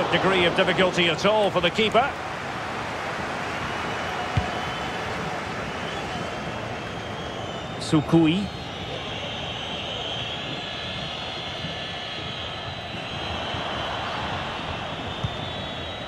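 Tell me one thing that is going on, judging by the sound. A stadium crowd murmurs and cheers steadily.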